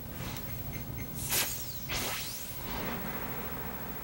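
A glowing arrow whooshes through the air.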